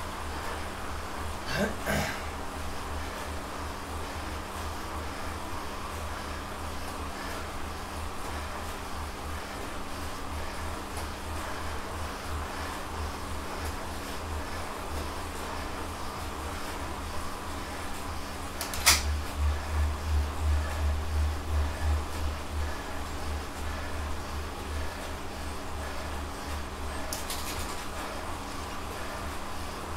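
A bike trainer hums with a steady, pulsing drone.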